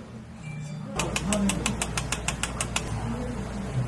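A small metal sieve is tapped over a cup.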